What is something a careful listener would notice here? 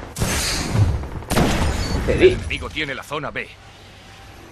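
Gunshots crack in quick bursts.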